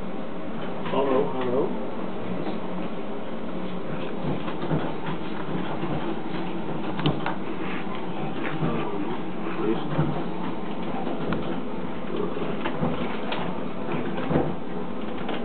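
Several men talk and chatter nearby.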